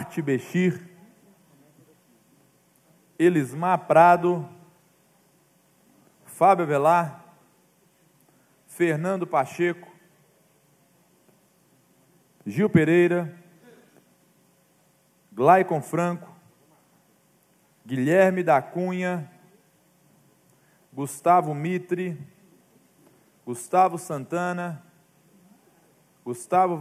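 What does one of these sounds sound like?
A young man speaks calmly into a microphone, in short phrases with pauses.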